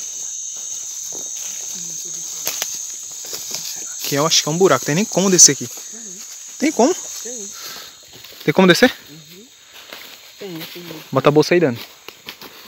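Footsteps crunch on dry leaves and dirt.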